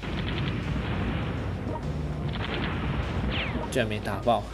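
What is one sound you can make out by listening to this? Cannon fire and explosions boom and rumble repeatedly.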